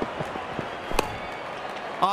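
A bat strikes a ball with a sharp knock.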